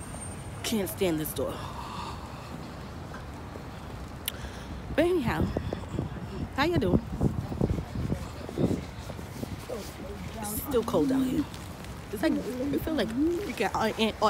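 A young woman talks with animation close to a phone microphone.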